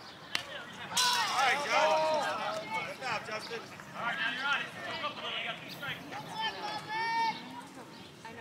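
Young players and adults shout and cheer from across an open field.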